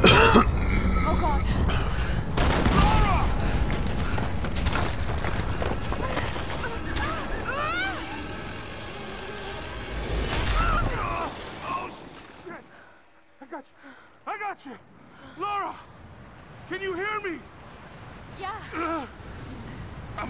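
A young woman cries out and pants with effort.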